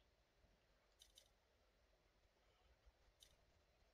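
A short interface chime sounds.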